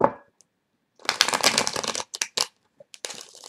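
Playing cards riffle together in a quick shuffle.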